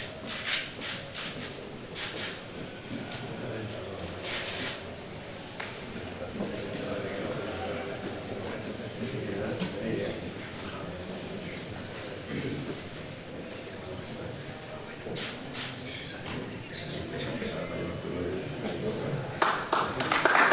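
A crowd murmurs and chats in an echoing hall.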